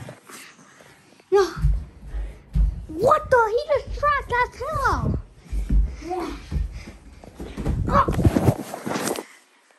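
Feet thump on a wooden floor.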